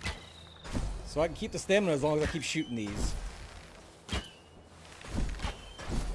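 A magic blast bursts with a sharp crack.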